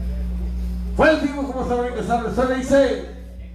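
A man sings loudly through a microphone.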